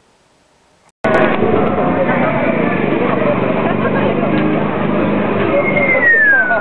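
A crowd chatters and murmurs all around, outdoors on a busy street.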